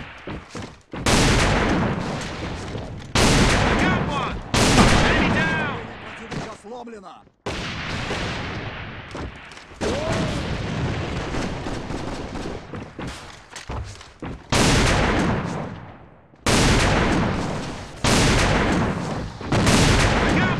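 A rifle fires loud, booming shots that echo briefly.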